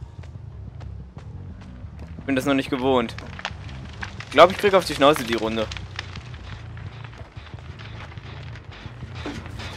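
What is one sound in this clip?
Heavy footsteps crunch steadily over the ground.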